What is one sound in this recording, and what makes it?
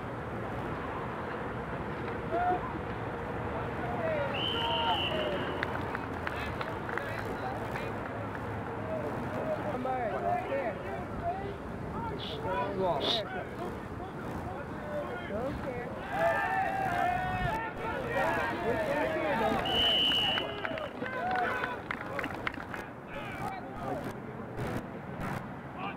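Men shout on the field.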